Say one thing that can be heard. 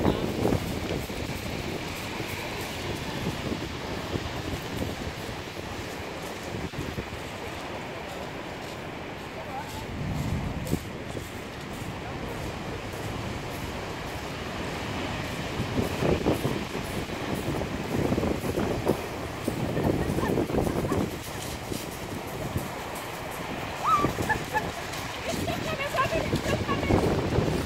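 Wind blows hard across the microphone.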